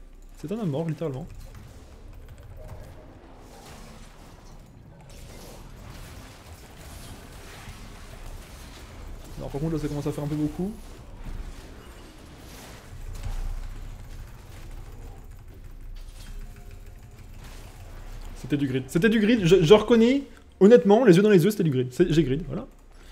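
A man speaks with animation into a nearby microphone.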